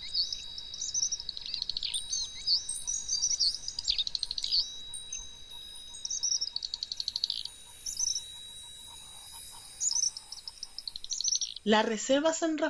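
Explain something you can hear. Small birds chirp and trill in quick bursts.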